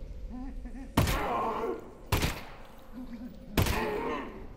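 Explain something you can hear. Pistol shots fire several times, each with a sharp crack and a short ringing tail.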